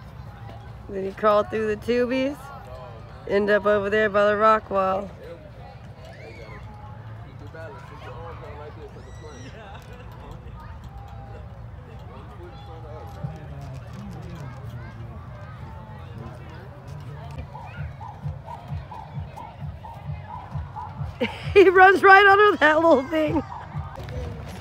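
A child shouts excitedly nearby.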